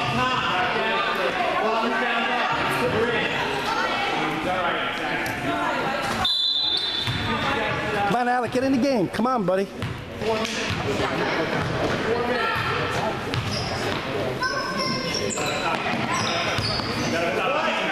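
Sneakers squeak sharply on a wooden floor in an echoing gym.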